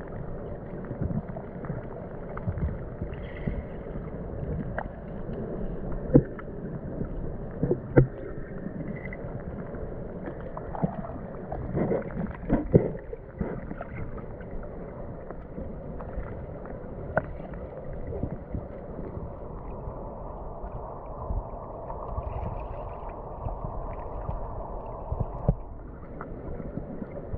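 Water rushes and gurgles, heard from underwater.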